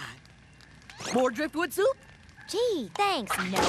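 A young woman exclaims with excitement.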